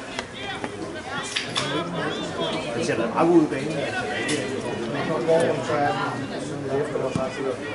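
Young male players shout to each other across an open field.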